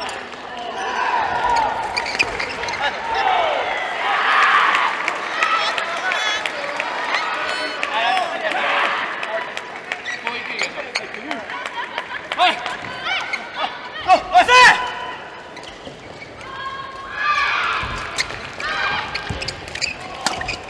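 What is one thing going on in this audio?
Young men shout and cheer between rallies.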